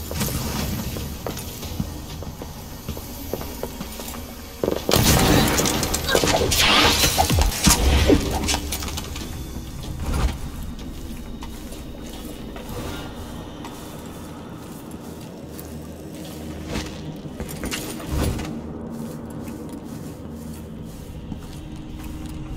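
Footsteps crunch over debris on a hard floor.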